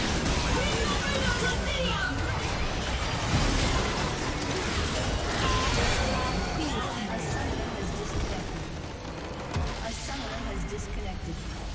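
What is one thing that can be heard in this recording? Spells, blasts and clashing weapons ring out in a busy battle.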